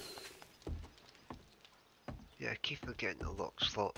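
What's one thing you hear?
Footsteps thud on wooden stairs and boards.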